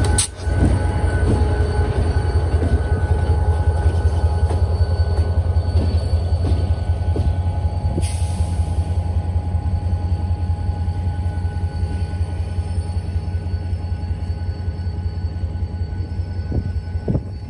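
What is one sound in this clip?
A diesel locomotive engine rumbles deeply as it passes.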